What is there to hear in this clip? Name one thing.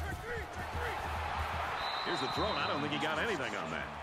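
Football players collide in a tackle.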